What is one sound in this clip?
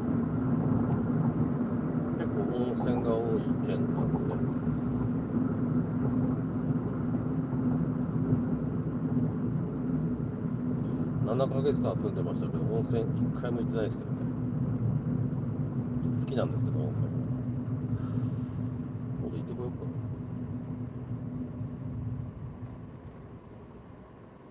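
A car engine hums steadily with tyre noise on the road, then fades as the car slows to a stop.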